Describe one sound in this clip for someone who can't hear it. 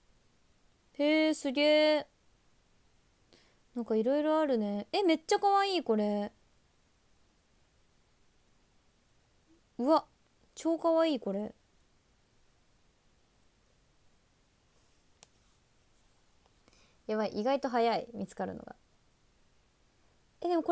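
A young woman speaks in short bursts, close to the microphone.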